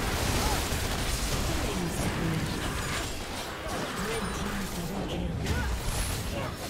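Magic blasts and weapon strikes crash in a fast, busy fight.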